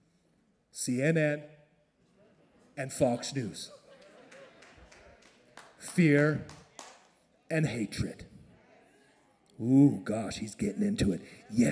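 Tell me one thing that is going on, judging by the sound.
A man speaks with animation into a microphone, in bursts, in a large hall with an echo.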